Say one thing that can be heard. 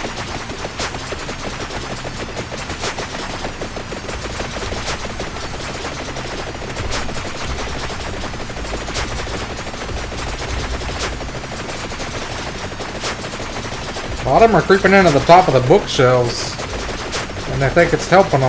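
Game sound effects crackle and chime steadily.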